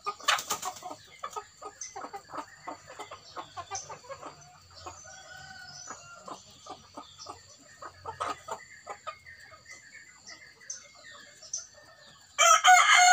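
Hens cluck softly close by.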